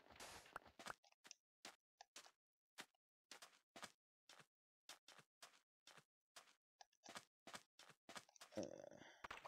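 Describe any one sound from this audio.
Footsteps crunch softly on sand at a steady pace.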